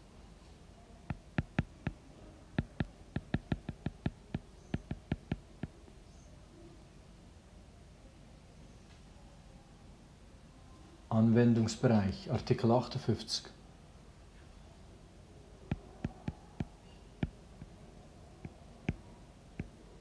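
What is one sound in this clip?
A pen taps and scratches on a writing surface.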